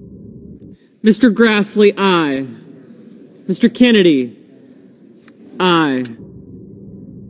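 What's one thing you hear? A man reads out names through a microphone in a large echoing hall.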